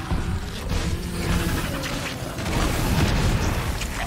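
Sword strikes clash and thud against a creature.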